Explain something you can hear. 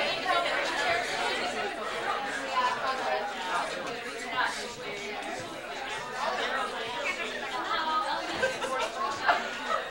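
A crowd of men and women chatter all at once in a room.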